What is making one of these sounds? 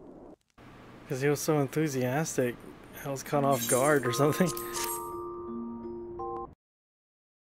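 Bright electronic chimes play a short, quick melody.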